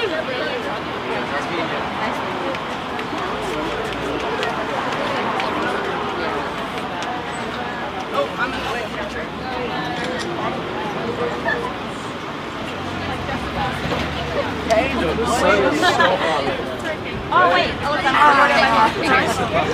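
A crowd of young people chatters close by outdoors.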